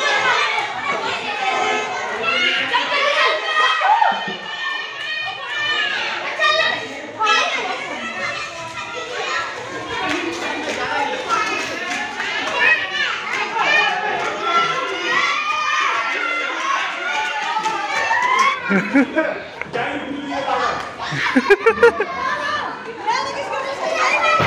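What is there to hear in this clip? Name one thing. Children shout and squeal excitedly nearby, outdoors.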